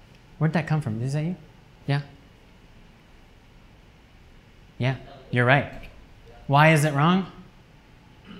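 A young man speaks calmly in short bursts with pauses.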